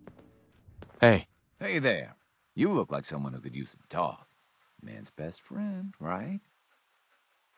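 A man speaks in a friendly, casual way close by.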